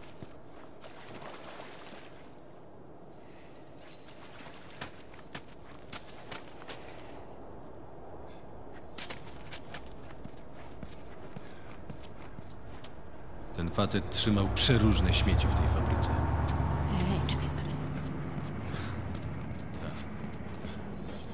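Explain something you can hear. Footsteps crunch on gritty ground.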